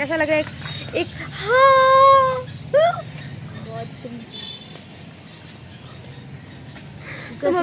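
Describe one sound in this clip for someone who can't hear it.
A young woman speaks close by, whining and groaning theatrically.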